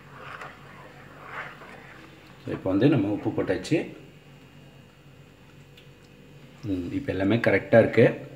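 A ladle stirs thick liquid in a pot.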